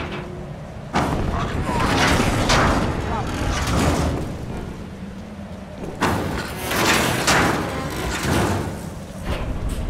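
A metal lift gate rattles and clanks as it slides open and shut.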